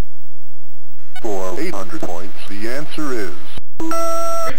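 Chiptune video game music plays briefly.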